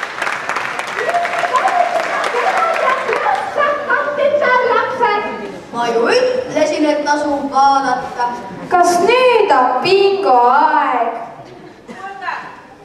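Young girls speak with animation from a stage, heard from the audience.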